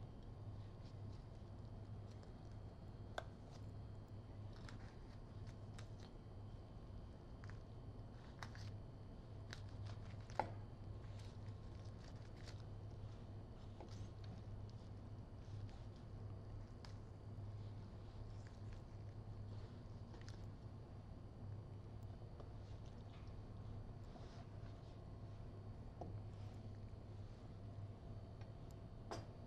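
A knife slices through roast meat.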